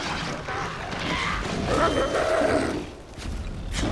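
A wolf snarls and yelps.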